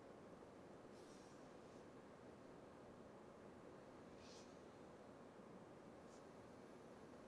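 Shoes scuff softly on a carpeted floor.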